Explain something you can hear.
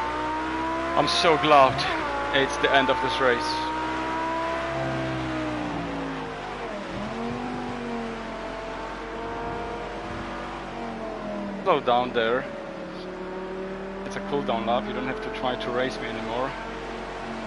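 A car engine blips sharply during quick gear changes.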